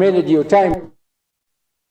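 An elderly man speaks formally into a microphone.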